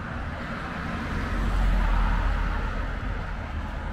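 Another car passes close by with a rushing whoosh.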